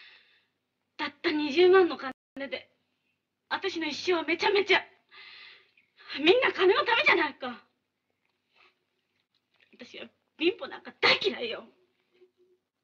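A young woman cries out bitterly and with anguish, close by.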